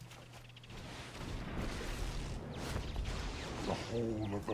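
A magical whoosh and rumble swell up from a game.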